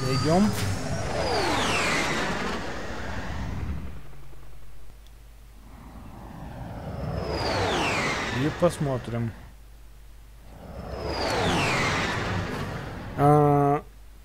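A spaceship roars past with a falling whoosh.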